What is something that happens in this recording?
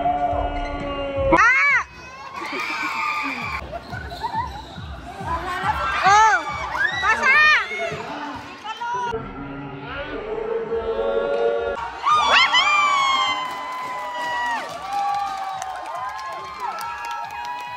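A crowd of young people cheers and shouts.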